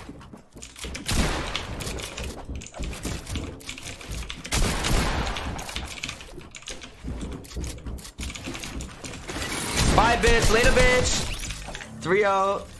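Wooden walls and ramps clatter as they are quickly built.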